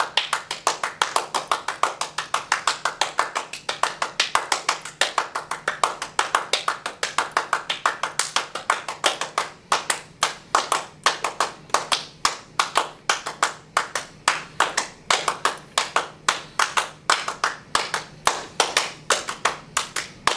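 A man and a woman clap their hands steadily in a room that echoes slightly.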